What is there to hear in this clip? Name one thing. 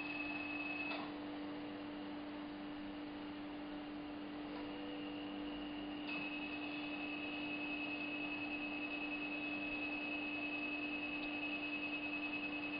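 A dental drill whines with a steady high pitch, close by.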